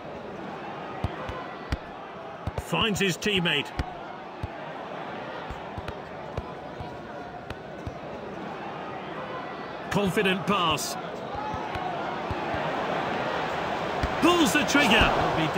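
A football is kicked with short, dull thuds.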